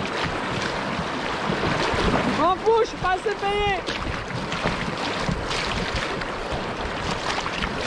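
Choppy river water splashes and laps against a small boat.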